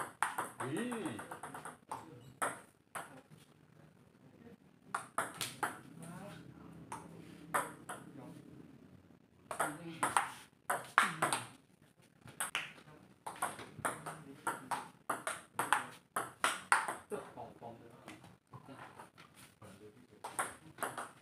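A ping-pong ball clicks back and forth on paddles and a table in a quick rally.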